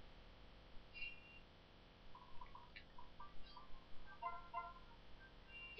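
Short electronic chimes and blips play from a handheld game.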